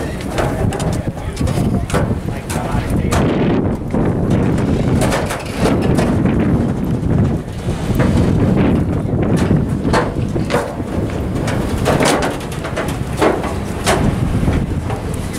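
Wind blows hard into the microphone outdoors.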